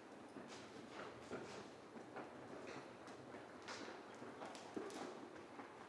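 A horse's hooves thud rhythmically on soft sand in a large echoing hall.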